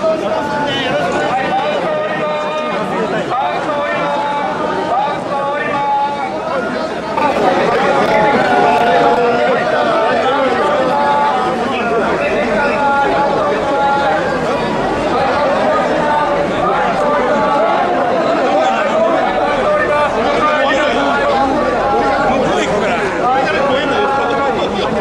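A dense crowd murmurs and calls out all around.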